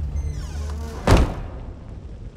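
A heavy wooden door thuds loudly once.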